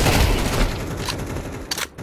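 A gun's parts click and rattle as it is handled.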